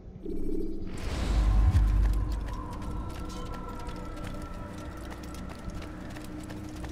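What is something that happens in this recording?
Footsteps patter on stone as a figure runs.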